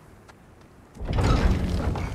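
A heavy wooden gate rumbles and groans as it is pushed.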